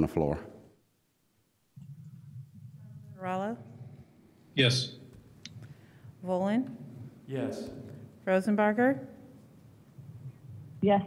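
A man speaks slowly into a microphone in short phrases with pauses.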